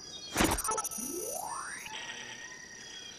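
A rising electronic tone sweeps upward.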